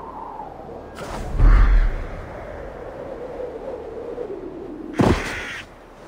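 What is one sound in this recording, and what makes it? Wind rushes loudly past during a long dive from a great height.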